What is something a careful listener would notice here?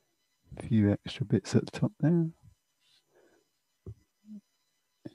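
A paintbrush softly dabs and strokes on paper.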